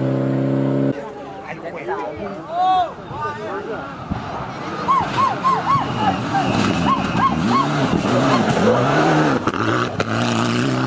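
A rally car engine revs up and down sharply through gear changes.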